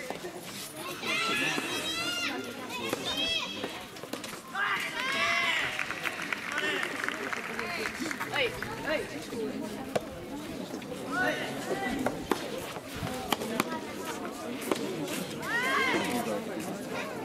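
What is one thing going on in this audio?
Young men shout out loudly across an outdoor court.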